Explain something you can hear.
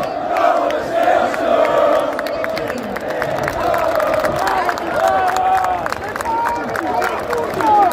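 Fans in a crowd clap their hands.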